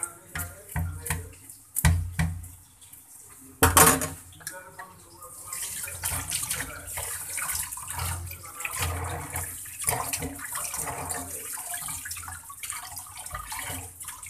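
Tap water runs and splashes into a basin.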